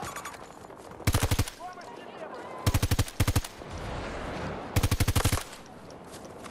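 A rifle fires in short, rapid bursts close by.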